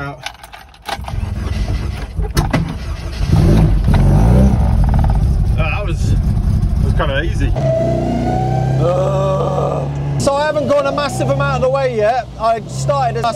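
A car engine rumbles loudly while driving.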